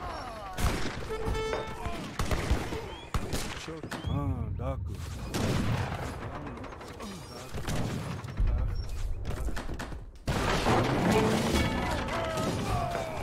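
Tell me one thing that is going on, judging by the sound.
Cannons boom and crash in a battle.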